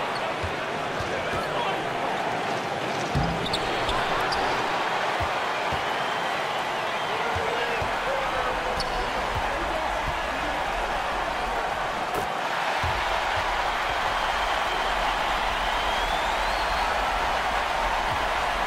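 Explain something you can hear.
A basketball thumps on a wooden court as it is dribbled.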